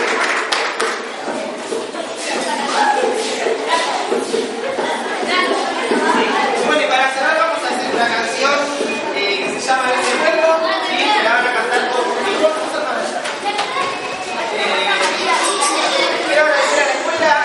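A group of children sings together.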